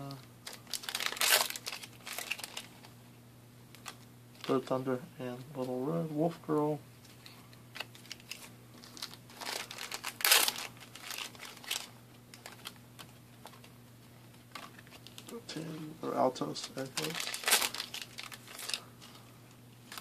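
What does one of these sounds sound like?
Plastic card wrappers crinkle.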